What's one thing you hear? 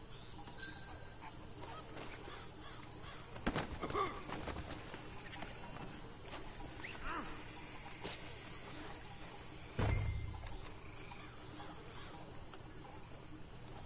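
Footsteps rustle through leafy undergrowth.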